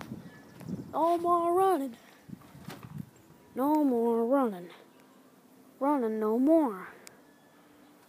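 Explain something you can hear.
A boy calls out in long, sing-song tones.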